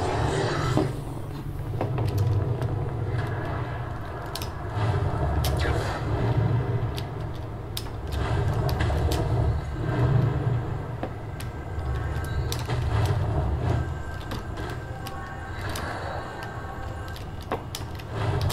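Keyboard keys click and tap rapidly.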